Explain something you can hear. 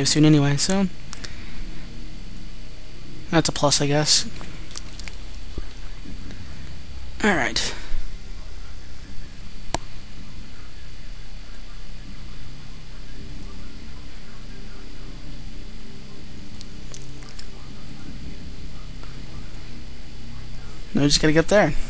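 A deep mechanical hum drones steadily.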